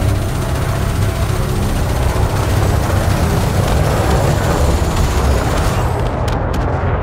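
Laser guns fire in rapid, crackling bursts.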